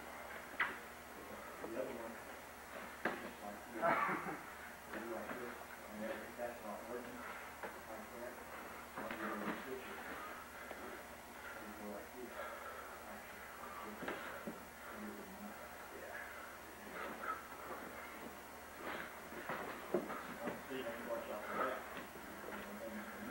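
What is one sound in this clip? Sneakers squeak and shuffle on a mat.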